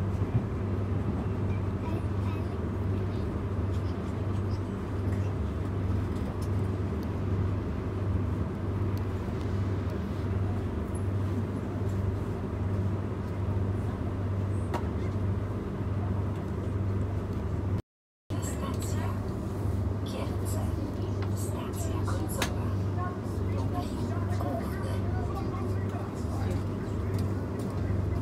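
A train rumbles steadily along the tracks with a low, pulsing hum.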